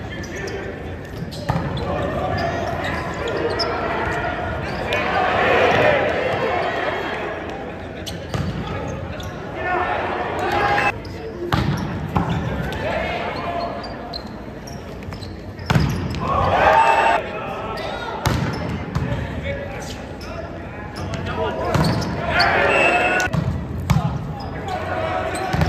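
A crowd of spectators cheers and claps in a large echoing hall.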